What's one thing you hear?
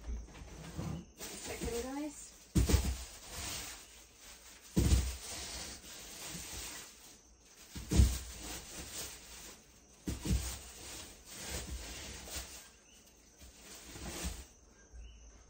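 Paper cards rustle and scrape close by.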